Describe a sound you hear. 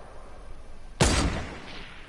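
A sniper rifle fires with a sharp crack.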